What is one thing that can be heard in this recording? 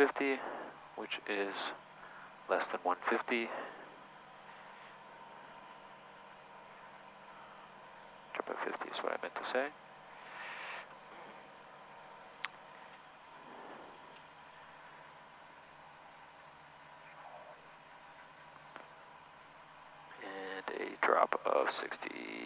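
Men talk calmly over a headset intercom.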